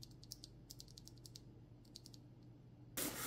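A keyboard switch clicks softly several times when pressed.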